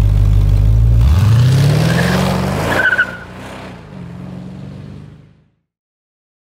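A car accelerates away with a rising roar that fades into the distance.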